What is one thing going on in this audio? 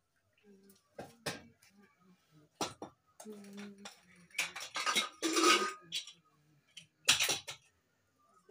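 Metal pots and lids clink and clatter close by.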